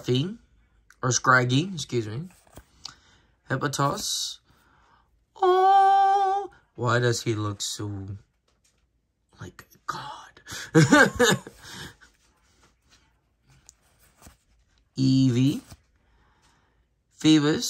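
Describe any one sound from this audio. Playing cards slide and flick against one another as they are shuffled through by hand.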